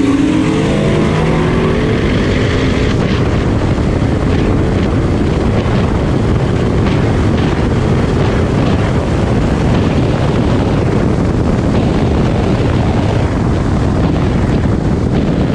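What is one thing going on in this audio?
Wind rushes loudly past a moving car.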